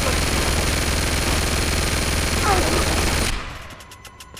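A heavy rotary machine gun fires in a loud, continuous roar.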